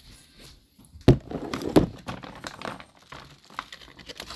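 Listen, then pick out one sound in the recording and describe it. Heavy stone footsteps thud and rumble.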